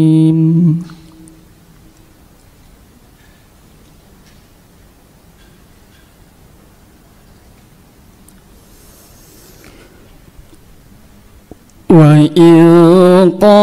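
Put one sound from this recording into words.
A young man chants in a long, melodic voice through a microphone, with pauses for breath.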